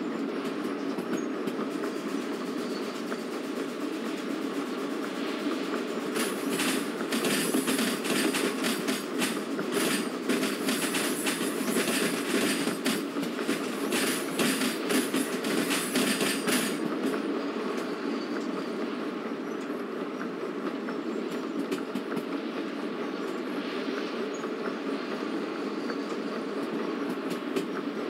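A steam locomotive chugs and rumbles steadily.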